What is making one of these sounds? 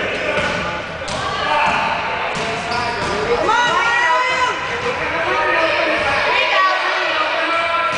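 Children shout and call out across a large echoing gym.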